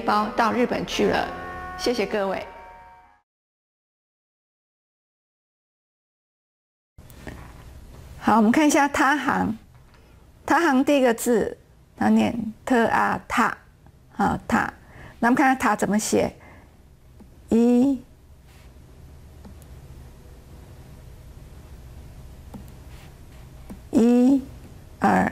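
A middle-aged woman speaks calmly and clearly into a microphone.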